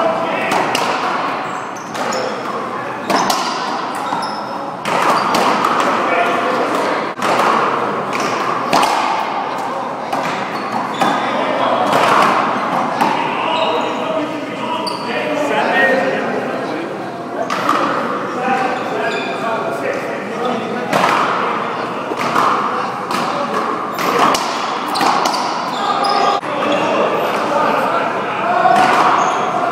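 Men talk and call out to each other, echoing in a large hall.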